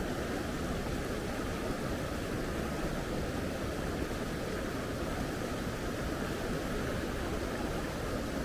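A mountain stream rushes and splashes steadily over rocks.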